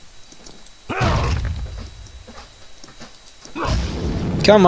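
A heavy magic blast booms and crackles.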